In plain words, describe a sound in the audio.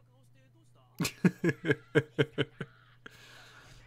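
A young man laughs in short bursts close to a microphone.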